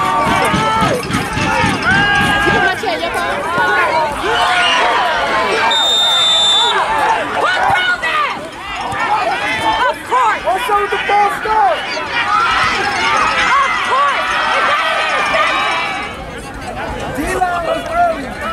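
Young football players shout to each other across an open field outdoors.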